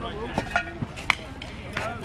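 A metal bat cracks against a ball outdoors.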